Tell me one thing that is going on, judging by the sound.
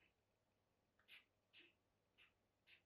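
A metal tool scrapes and taps on leather in short bursts.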